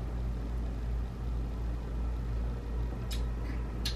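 An elderly man sips a drink.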